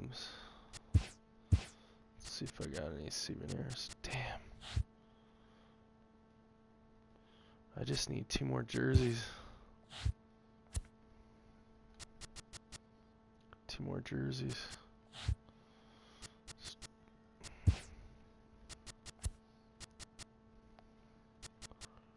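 Short menu clicks tick as selections change.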